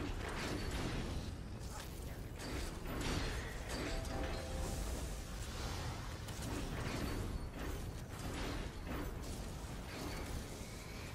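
Magic spells burst and crackle in a fierce battle.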